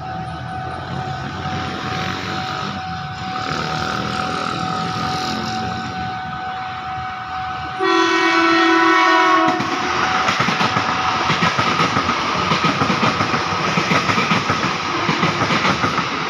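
An electric train approaches and rumbles past loudly on the tracks.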